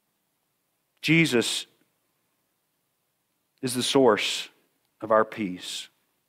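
A middle-aged man speaks through a microphone in short, pausing phrases.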